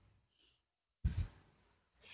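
Cards rustle and flick in a hand.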